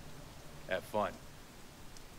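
A man speaks a few short words nearby.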